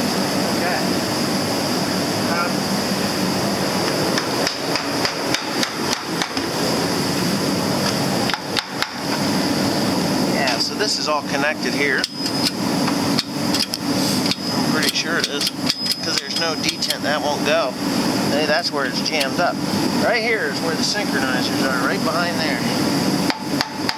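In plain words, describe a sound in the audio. Metal tools clink and tap against a gearbox casing.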